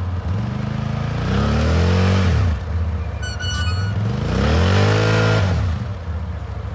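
An all-terrain vehicle engine revs up and down twice.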